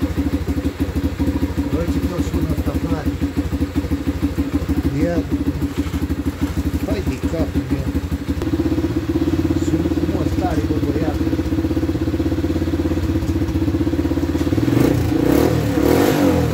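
A small engine idles with a rapid, steady chugging, growing louder partway through.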